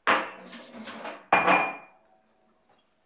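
Water splashes from a tap into a sink.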